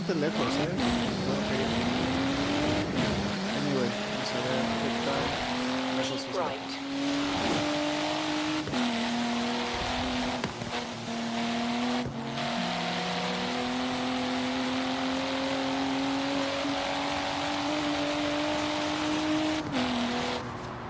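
A sports car engine drops in pitch with each upshift.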